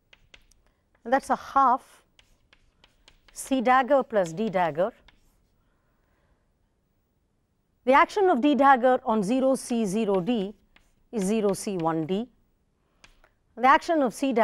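A woman speaks calmly, as if explaining, through a microphone.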